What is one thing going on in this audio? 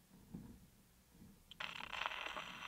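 A needle drops onto a spinning record with a click.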